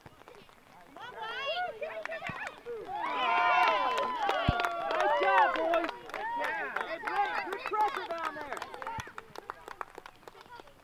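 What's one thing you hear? Young boys shout and cheer excitedly outdoors.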